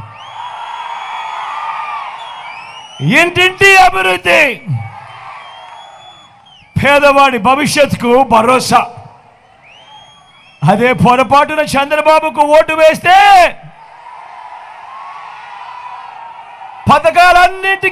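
A large crowd cheers and roars.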